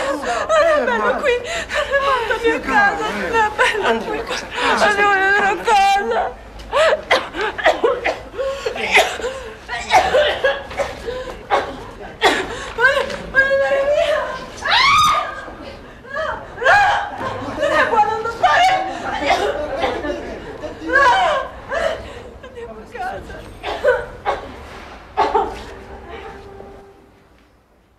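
A woman speaks tearfully, close by.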